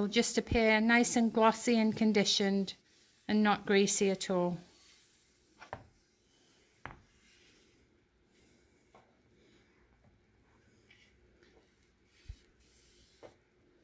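A soft pad rubs lightly over wood.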